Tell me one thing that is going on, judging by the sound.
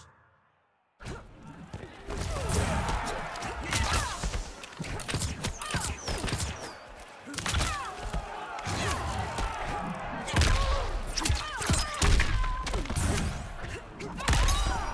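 A fighter grunts and shouts while attacking.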